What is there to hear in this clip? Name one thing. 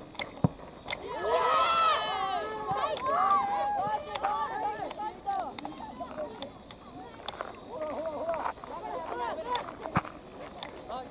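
Boys shout and call out to each other outdoors.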